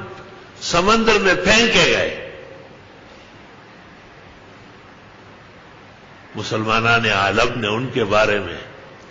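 An elderly man speaks slowly and earnestly into a microphone, with pauses.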